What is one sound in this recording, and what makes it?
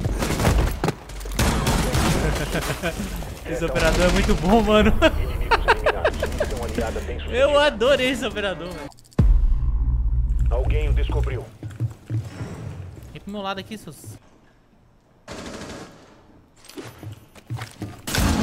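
Gunshots crack in a video game.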